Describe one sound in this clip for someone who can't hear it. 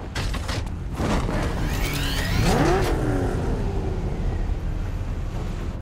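A powerful car engine starts and revs up with a rising whine.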